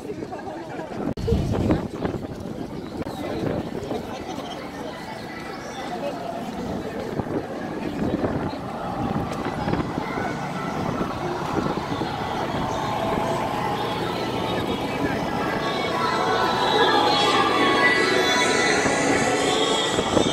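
Many runners' footsteps patter on the road.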